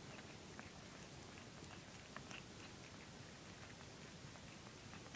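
A mother cat licks her newborn kittens with soft, wet sounds.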